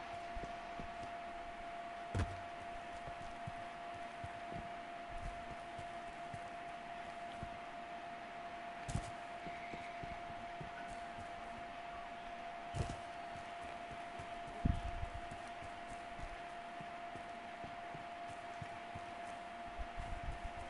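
Footsteps patter quickly over dirt and grass.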